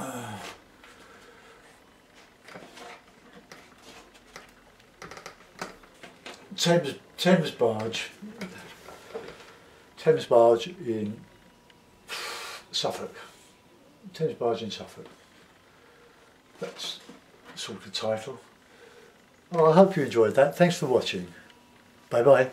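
An elderly man talks calmly and close by, in short bursts with pauses.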